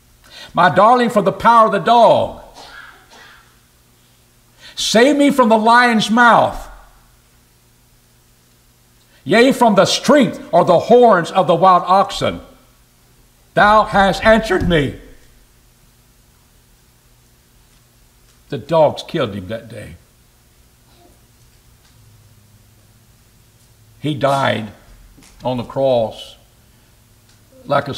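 An older man preaches with feeling into a microphone, speaking in bursts with long pauses.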